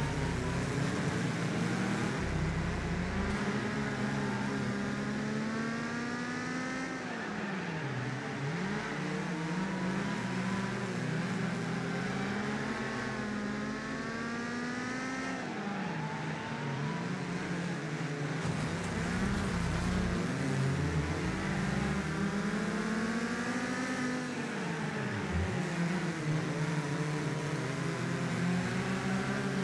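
A car engine roars, revving up and dropping with each gear change.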